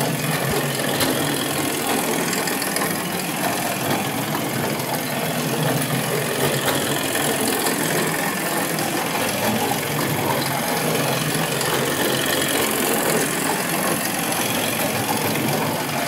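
A toy tractor's motor whirs as it crawls along.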